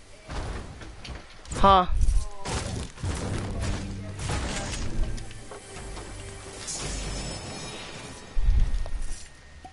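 A pickaxe strikes metal and wood again and again.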